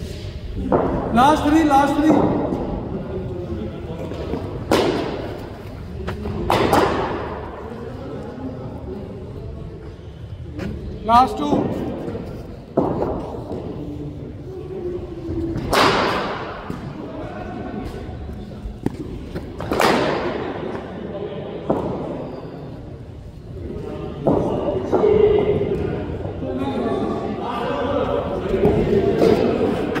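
A man talks nearby, in a hall with some echo.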